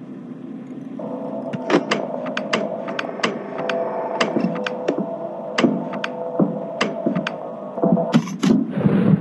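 Electronic static hisses and crackles.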